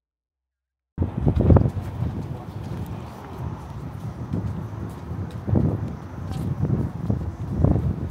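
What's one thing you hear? Footsteps tap on pavement outdoors.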